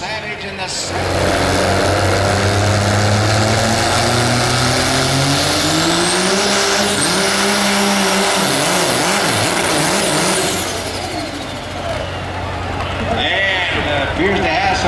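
A second diesel truck engine roars and revs under load.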